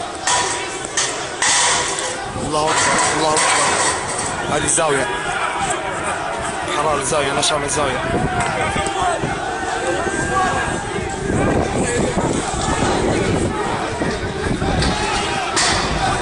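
A large crowd of men shouts and chants outdoors at night.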